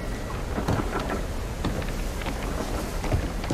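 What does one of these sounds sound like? Water laps gently against wooden boats.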